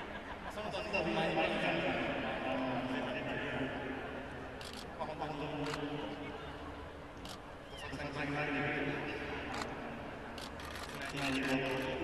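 A young man laughs softly.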